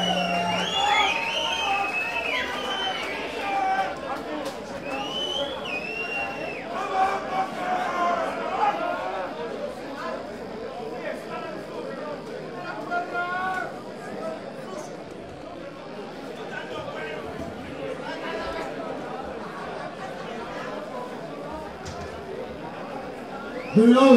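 Drums and cymbals are played in a band.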